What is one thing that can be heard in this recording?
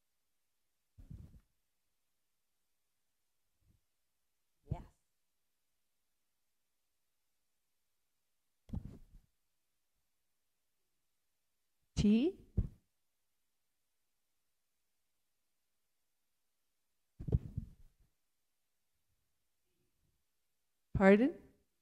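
A woman speaks into a microphone in short phrases with long pauses.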